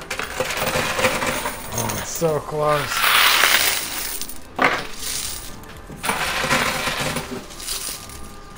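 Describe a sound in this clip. Coins clink and rattle as a machine pushes them along.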